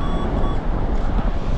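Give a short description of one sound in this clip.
A metal detector beeps in short, steady tones.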